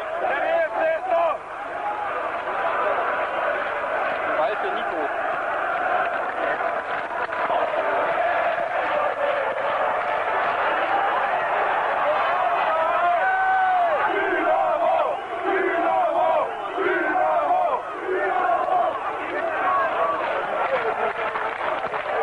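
Men nearby shout and sing along with the crowd.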